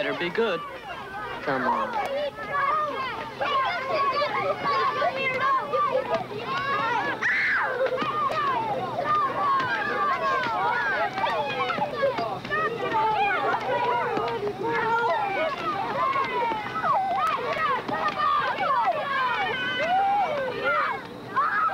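A crowd of men and women talks and laughs loudly all around.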